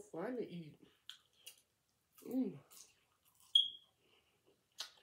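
A young woman chews food with soft wet smacking sounds.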